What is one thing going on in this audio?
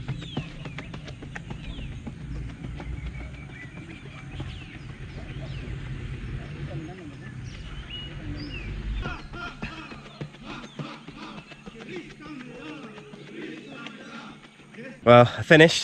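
A runner's footsteps crunch on a dirt track.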